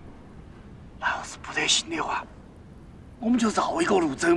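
A second man speaks in a low, hushed voice, close by.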